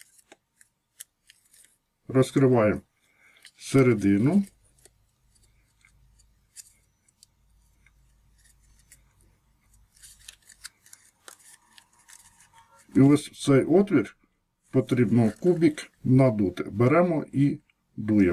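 Paper crinkles softly as it is folded by hand.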